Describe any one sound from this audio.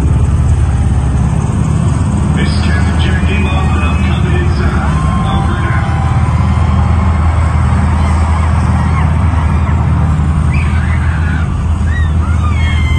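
A large crowd cheers and screams.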